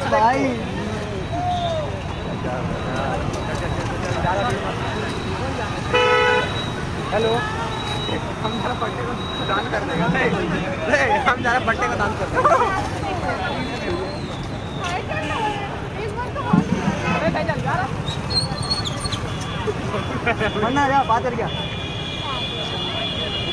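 Traffic rumbles steadily along a busy road outdoors.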